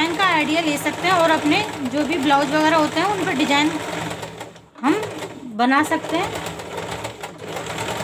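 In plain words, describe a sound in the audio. A sewing machine runs, its needle stitching steadily.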